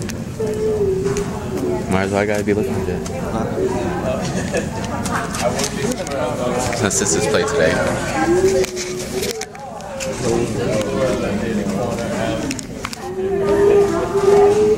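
A crowd chatters throughout a large echoing hall.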